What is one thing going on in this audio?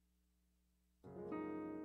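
An electronic keyboard suddenly plays a loud chord.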